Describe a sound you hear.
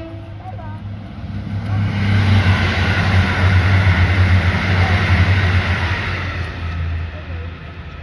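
A passenger train passes at speed with a deep rumble.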